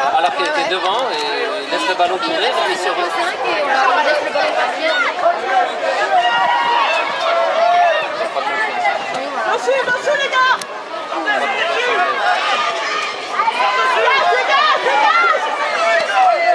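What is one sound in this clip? A crowd of spectators chatters and calls out from the sideline.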